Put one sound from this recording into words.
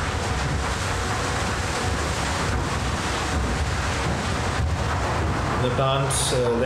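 Rocks and rubble pour down with a loud rattling rush.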